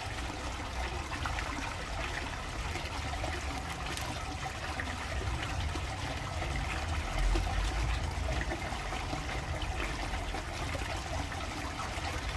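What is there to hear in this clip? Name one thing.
Dry reeds rustle and crackle under a hand.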